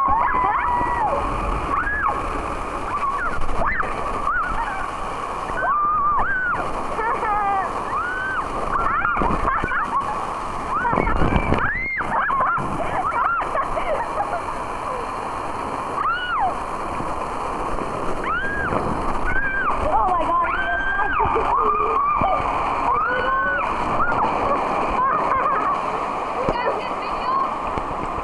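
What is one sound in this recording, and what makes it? Water rushes and splashes loudly down a slide.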